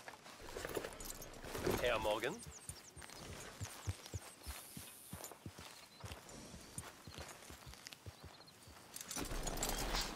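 A horse's hooves thud as it walks on grass.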